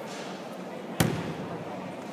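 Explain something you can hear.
A judoka slams onto the mat with a loud thud.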